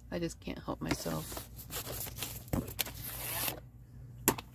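Hands rub and slide across paper.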